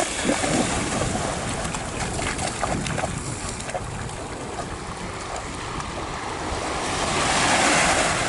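Dogs splash through shallow water.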